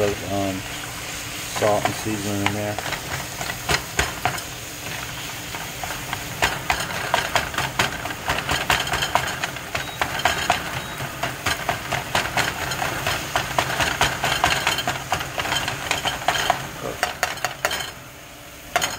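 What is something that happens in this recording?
Ground meat sizzles in a hot pan.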